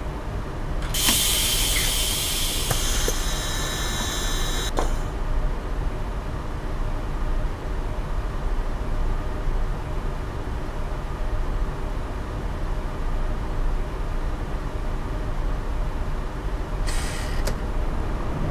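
Air brakes hiss loudly on a bus.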